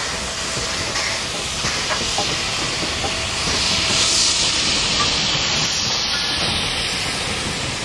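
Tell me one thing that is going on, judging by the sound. Steam roars from a steam locomotive's safety valve.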